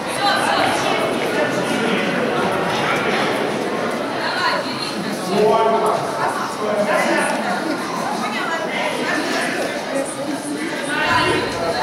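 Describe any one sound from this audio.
A young woman talks to the children.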